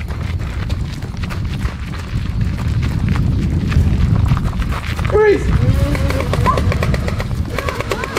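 Footsteps run quickly over a dirt path.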